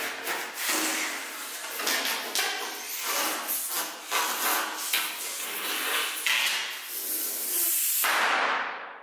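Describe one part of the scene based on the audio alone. A man blows hard into a balloon in long puffs.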